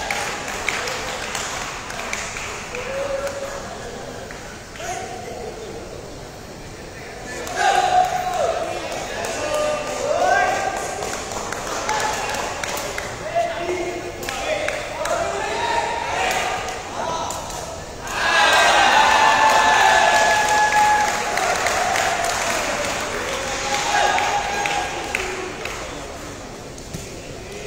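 Young men shout and call to each other in a large echoing hall.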